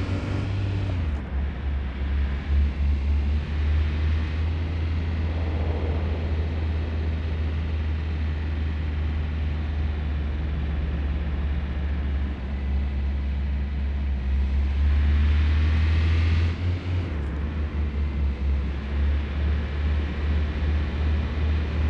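An engine hums steadily, rising in pitch as it speeds up.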